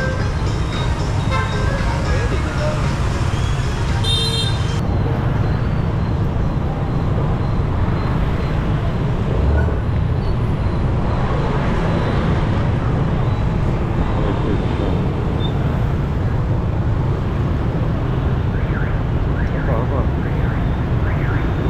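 Many motorbike engines hum and buzz close by in busy street traffic.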